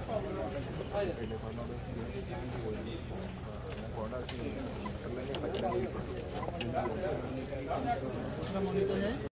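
A group of men and a woman chatter casually outdoors.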